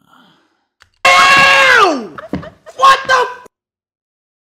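A young man laughs and shouts excitedly.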